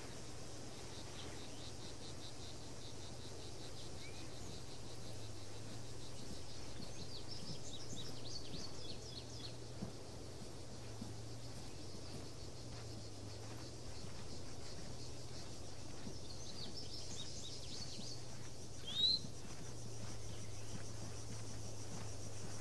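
Footsteps crunch on dry dirt.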